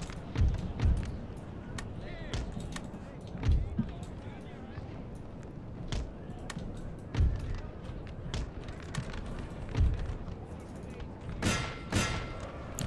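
Musket shots crack sharply now and then.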